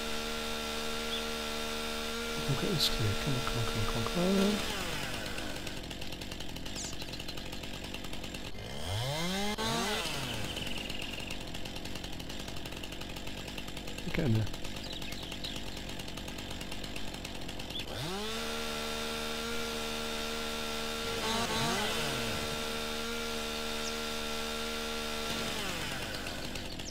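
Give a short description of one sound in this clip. A chainsaw engine runs steadily.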